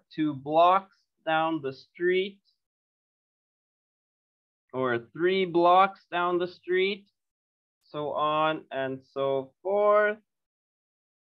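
A man speaks calmly over an online call, in short phrases.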